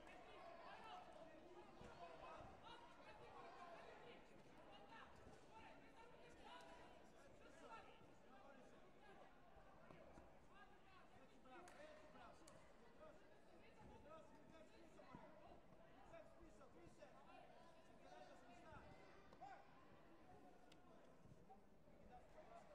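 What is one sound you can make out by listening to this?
People chatter and call out in a large echoing sports hall.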